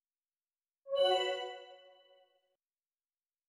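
A bright electronic chime rings once and quickly fades.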